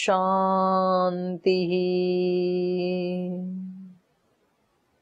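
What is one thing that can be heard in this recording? A middle-aged woman chants a long, steady note.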